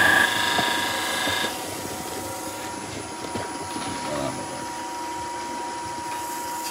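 A wood lathe motor hums steadily.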